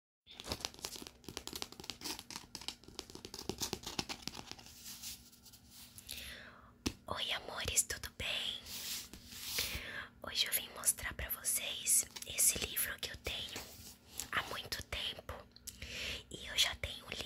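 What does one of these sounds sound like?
Fingers rub and tap on a paper book cover, close up.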